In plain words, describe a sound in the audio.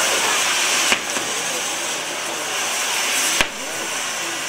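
Fireworks bang sharply.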